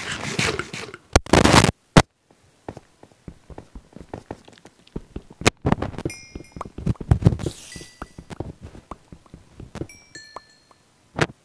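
A video game pickaxe chips at stone blocks.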